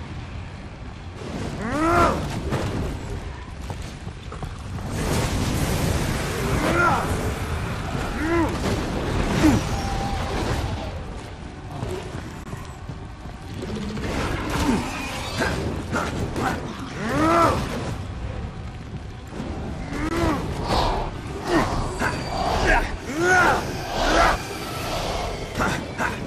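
Blades slash and strike with sharp hits.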